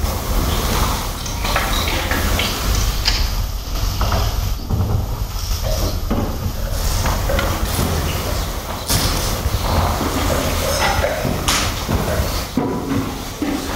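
A man speaks to a room through a microphone, calmly, in an echoing hall.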